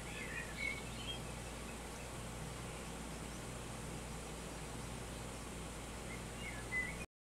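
A stream rushes steadily over rocks.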